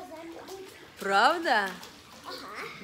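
A small child squeals loudly.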